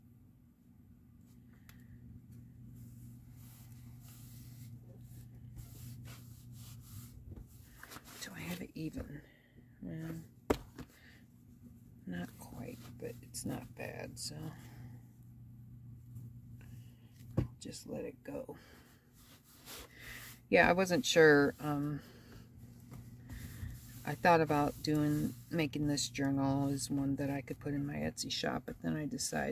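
Hands smooth and press fabric with a soft rustle.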